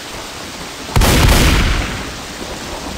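A shotgun fires a single loud blast that booms and rings out.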